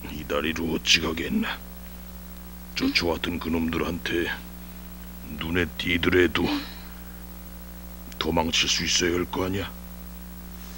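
A man speaks quietly in a low voice, close by.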